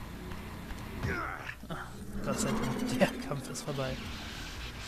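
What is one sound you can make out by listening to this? A beast snarls and growls.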